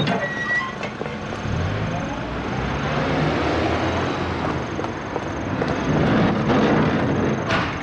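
A car engine rumbles as a car drives off.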